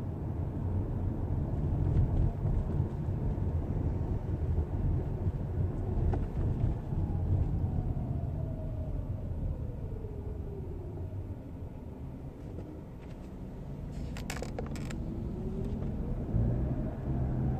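A car engine hums steadily from inside the car as it drives along a street.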